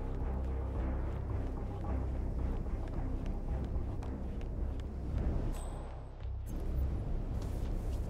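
Soft footsteps creep across a wooden floor and up stairs.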